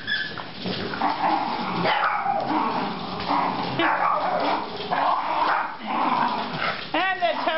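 Small dogs growl and snarl as they tug at a toy.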